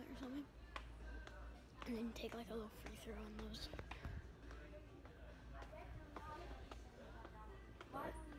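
A boy speaks close up, talking quietly and quickly.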